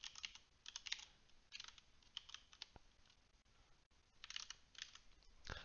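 Keys on a keyboard click in quick bursts of typing.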